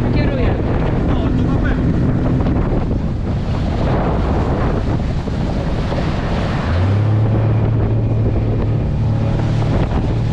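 Water rushes and splashes against the hull of an inflatable boat at speed.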